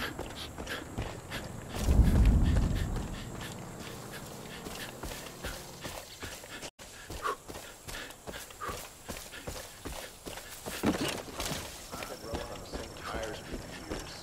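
Footsteps crunch steadily through dry grass.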